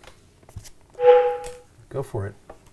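A tablet app plays a short electronic tone.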